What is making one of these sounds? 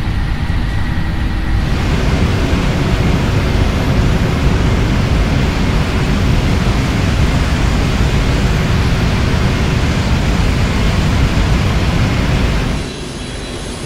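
Jet engines roar loudly as an airliner speeds down a runway.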